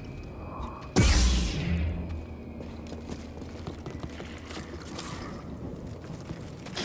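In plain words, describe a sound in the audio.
A lightsaber ignites with a sharp burst and hums.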